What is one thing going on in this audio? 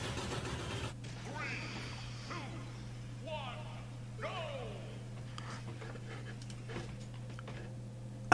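Video game sound effects play through a computer.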